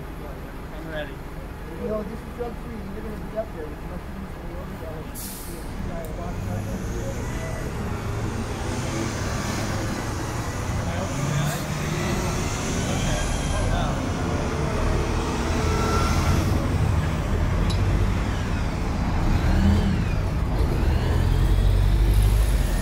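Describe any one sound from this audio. Traffic rumbles steadily along a city street.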